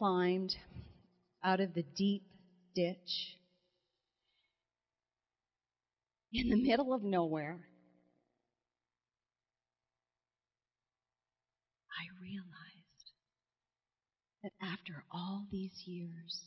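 A middle-aged woman speaks with animation through a microphone, pausing between phrases.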